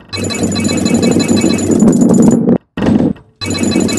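Blocks clatter and scatter as a ball smashes through them.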